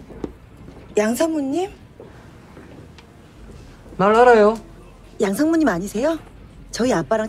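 A young woman speaks anxiously close by.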